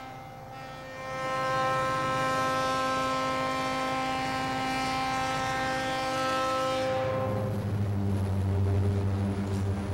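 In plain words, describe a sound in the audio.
A diesel locomotive rumbles as it pulls a train past.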